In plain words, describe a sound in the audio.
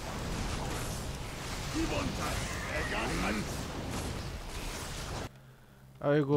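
Weapons clash and spells crackle in a fantasy battle.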